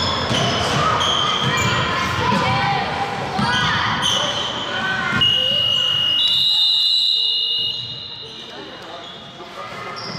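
Children shout and call out during a game in a large echoing hall.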